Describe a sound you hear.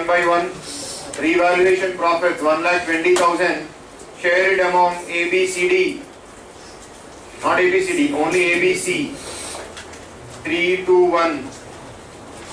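A man speaks clearly into a microphone, explaining in a calm lecturing voice.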